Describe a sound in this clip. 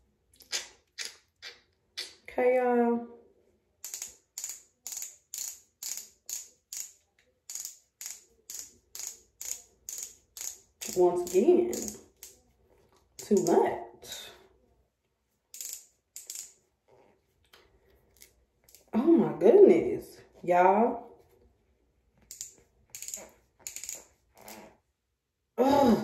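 Long fingernails tap and click on a small plastic tube.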